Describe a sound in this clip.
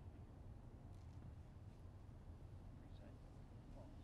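Footsteps shuffle softly on pavement.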